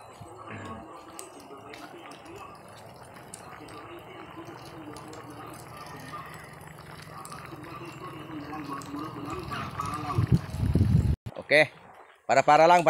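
Liquid simmers and bubbles in a pan.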